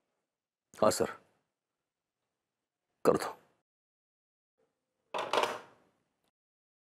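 A man speaks firmly into a phone, close by.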